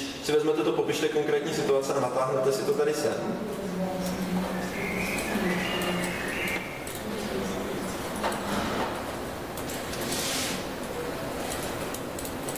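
A man lectures calmly, heard from across a room.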